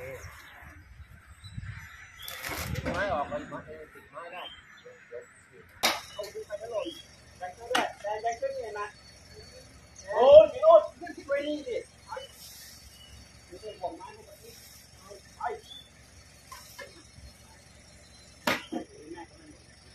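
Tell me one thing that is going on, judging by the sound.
Men talk to one another nearby outdoors.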